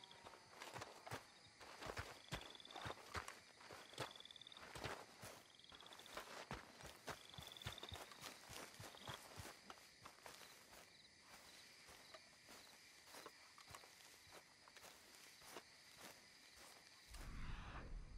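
Footsteps crunch quickly on a dirt path outdoors.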